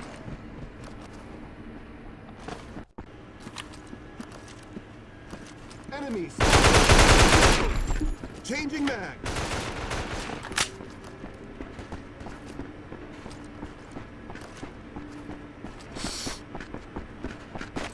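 Footsteps patter quickly.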